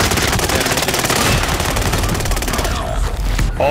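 An explosion roars loudly.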